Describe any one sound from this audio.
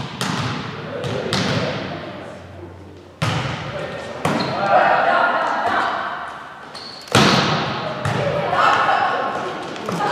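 A volleyball is struck with sharp slaps that echo through a large hall.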